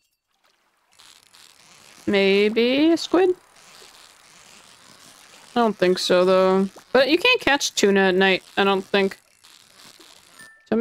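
A fishing reel whirs steadily.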